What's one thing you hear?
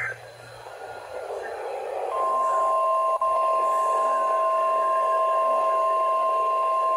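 A radio speaker hisses with static.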